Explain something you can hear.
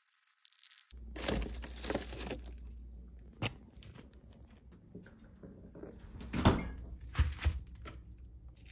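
Plastic wrap crinkles.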